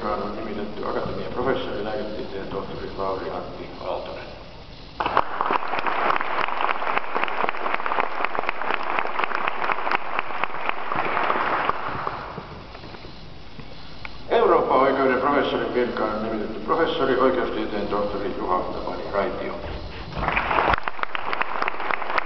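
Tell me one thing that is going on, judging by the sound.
An elderly man speaks formally into a microphone in a large echoing hall.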